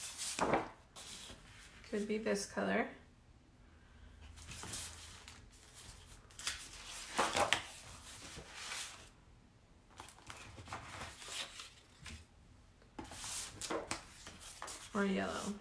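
Paper rustles and slides as hands handle it.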